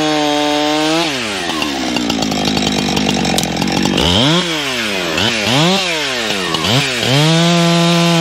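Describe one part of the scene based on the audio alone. A chainsaw idles and revs up and down between cuts.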